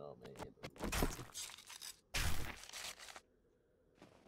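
A knife chops into an animal carcass with wet thuds.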